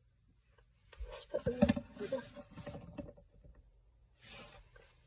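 Cloth brushes and rustles close by.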